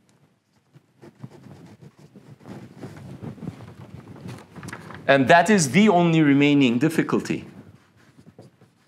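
A man speaks calmly, lecturing.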